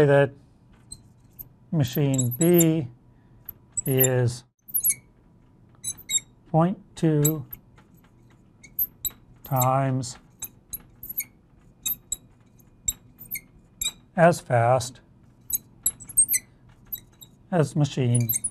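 A marker squeaks and taps on a glass board.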